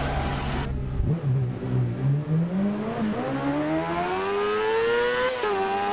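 A motorcycle engine idles low, then revs up again.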